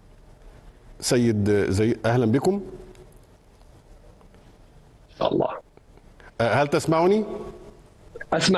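A man speaks calmly and clearly into a microphone, in short phrases with pauses.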